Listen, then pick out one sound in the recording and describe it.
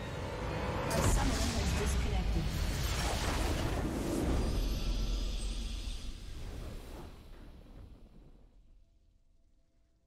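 A triumphant victory fanfare swells with a booming burst and then slowly fades away.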